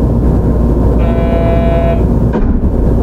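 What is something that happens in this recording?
A train horn sounds briefly.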